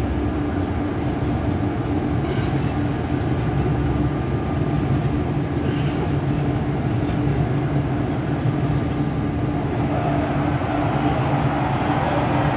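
A trolley train rumbles slowly along rails.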